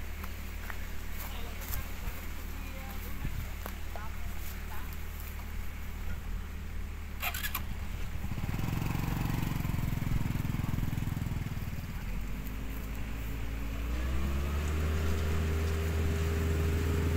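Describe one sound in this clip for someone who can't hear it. A small farm engine drones steadily outdoors, growing louder and rising in pitch toward the end.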